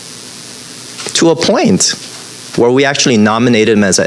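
A man speaks with animation through a microphone in a large echoing room.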